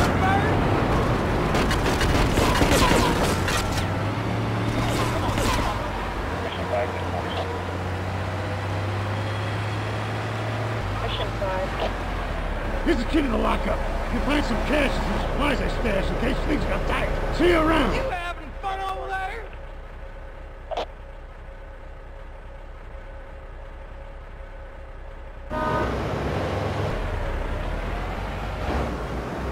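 A heavy truck engine drones as the truck drives.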